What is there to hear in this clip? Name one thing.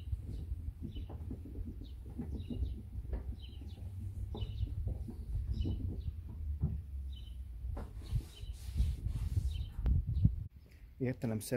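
A cloth rubs and squeaks against a smooth metal panel.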